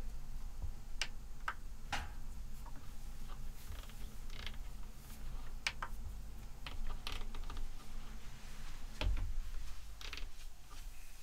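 Buttons click on a control surface.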